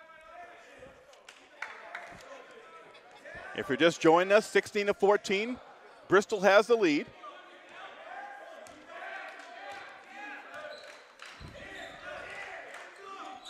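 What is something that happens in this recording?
A basketball bounces on a hardwood floor in an echoing gym.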